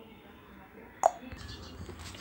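A computer's power button clicks.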